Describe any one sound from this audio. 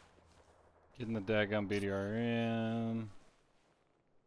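A man speaks into a microphone close by.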